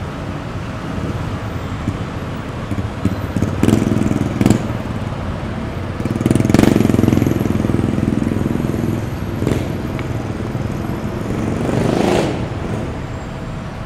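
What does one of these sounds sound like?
Motorbikes ride past close by with their engines humming.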